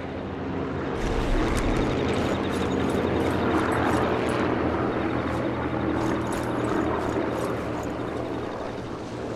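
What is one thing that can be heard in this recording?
Footsteps rustle through tall grass close by.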